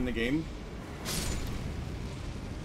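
A fiery explosion booms in a video game.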